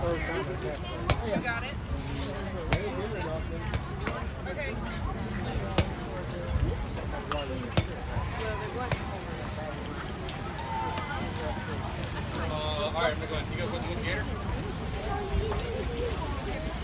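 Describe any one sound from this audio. A crowd of young women and men chatter and call out outdoors.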